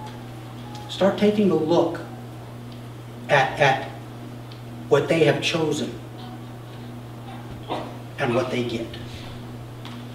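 A man speaks with animation in an echoing room, in short bursts with pauses.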